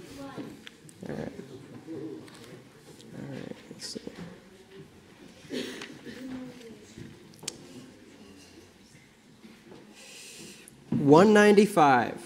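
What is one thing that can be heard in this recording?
A young man reads out calmly into a microphone in a room with some echo.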